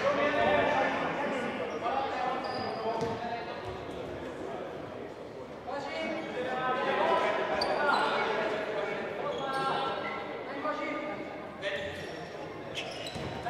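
Sneakers squeak on a hard indoor court.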